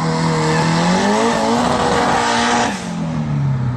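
Car engines rev loudly and roar off down a track.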